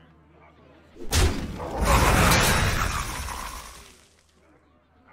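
A loud crashing blast of game effects bursts out and fades away.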